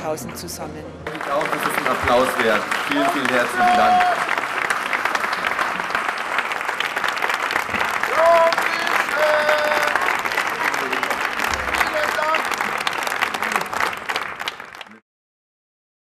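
A large crowd claps and applauds.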